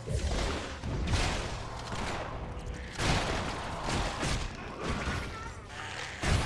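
Magic bolts whoosh and crackle in rapid bursts.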